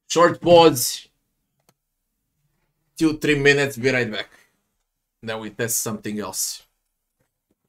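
A man speaks into a microphone with animation, close up, in short bursts.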